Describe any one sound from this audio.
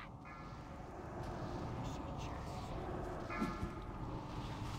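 Tonal game alert chimes ring out.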